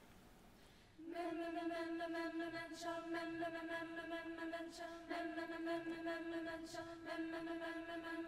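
A large choir sings a long, steady held chord in a large hall.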